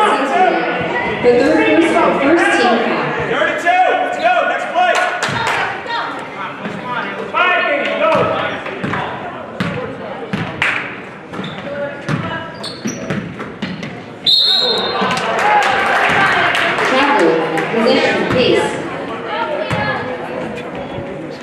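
A crowd cheers and talks in an echoing gym.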